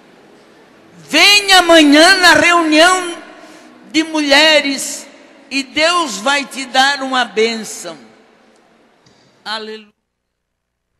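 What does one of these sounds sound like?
A man preaches fervently through loudspeakers in a large echoing hall.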